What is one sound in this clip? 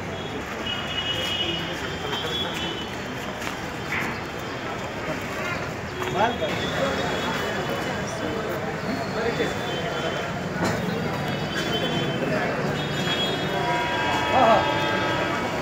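A crowd of men murmurs and talks nearby outdoors.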